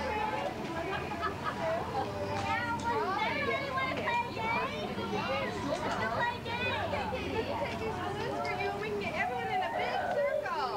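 Young children chatter and squeal in high voices outdoors.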